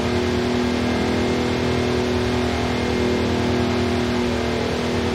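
Tyres rumble over a road.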